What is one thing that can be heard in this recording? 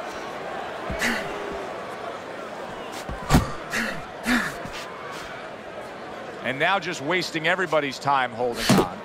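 Punches thud against a boxer's body.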